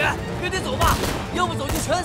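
A young man shouts in a panic.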